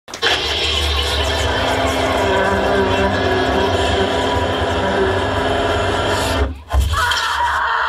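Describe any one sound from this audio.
Drums thump and crash in a live band.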